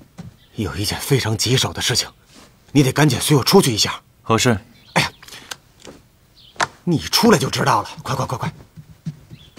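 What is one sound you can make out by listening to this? A man speaks urgently and close by.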